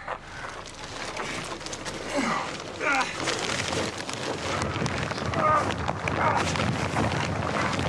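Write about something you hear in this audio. A plastic sheet rustles and crinkles as it is handled.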